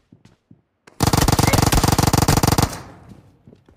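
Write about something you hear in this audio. A rifle fires a long rapid burst, loud and close.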